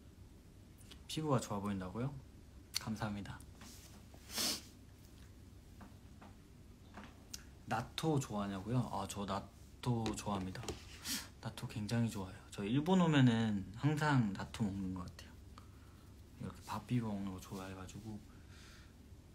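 A young man speaks casually and close by, with pauses.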